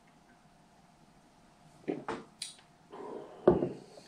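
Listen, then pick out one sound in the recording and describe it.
A glass is set down on a wooden table with a soft knock.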